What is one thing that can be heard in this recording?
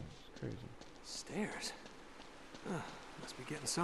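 Footsteps crunch on snowy stone steps.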